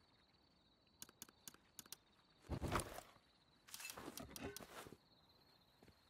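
Menu clicks tick quickly.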